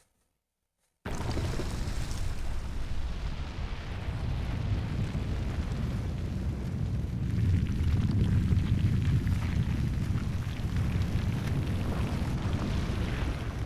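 A large stone bursts up out of the ground with a deep, rumbling roar.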